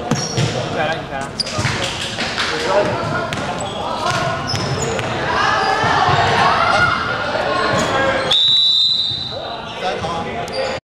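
Young men call out and talk in a large echoing gym.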